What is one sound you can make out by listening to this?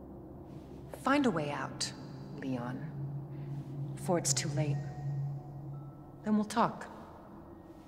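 A young woman speaks calmly and softly.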